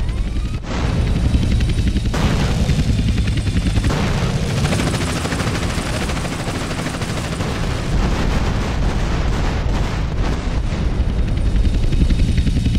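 A helicopter's rotor thuds loudly and steadily overhead.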